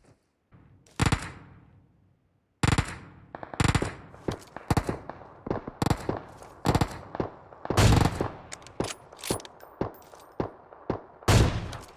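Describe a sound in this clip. Sniper rifle shots crack and echo.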